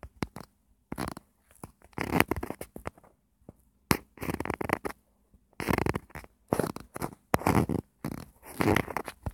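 A young boy talks with animation close to a microphone.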